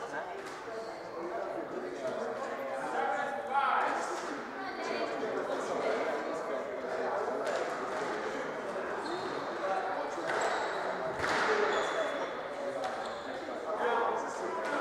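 A squash ball smacks off rackets and walls in a quick rally.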